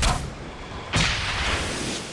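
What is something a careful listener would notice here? A gunshot cracks nearby and echoes.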